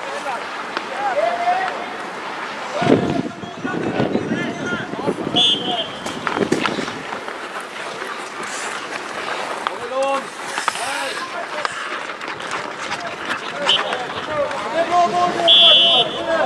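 Players shout to each other across the ice in the distance.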